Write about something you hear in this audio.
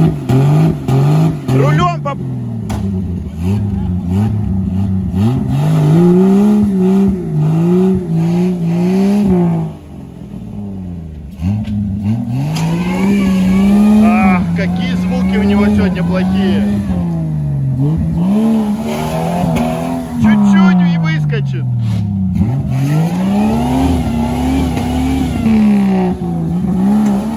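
An engine revs hard and rises and falls in pitch.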